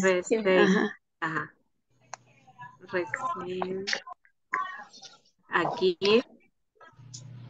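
A woman speaks calmly over an online call, with short pauses.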